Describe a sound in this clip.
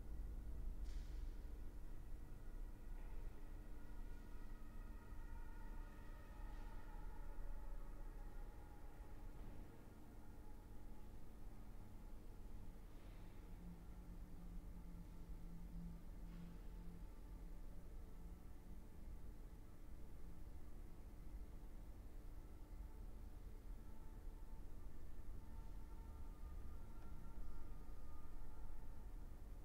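A cello plays a slow, sustained melody in a reverberant room.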